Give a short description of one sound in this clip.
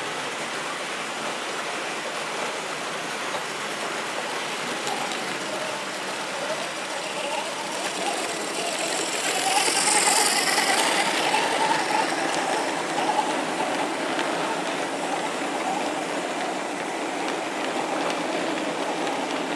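A model train rumbles and clatters along its track, growing louder as it comes close.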